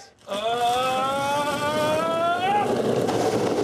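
A man yells a long drawn-out shout.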